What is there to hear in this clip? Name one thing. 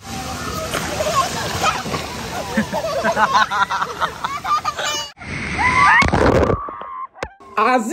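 Water splashes loudly.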